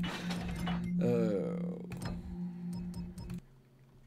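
A short click sounds.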